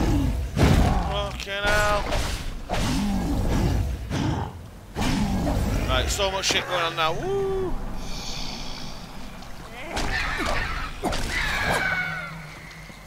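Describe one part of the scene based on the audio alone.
A sword slashes in a video game fight.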